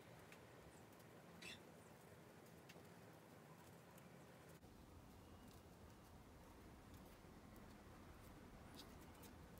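Hands wrap cord around a wooden handle, with soft rustling and scraping.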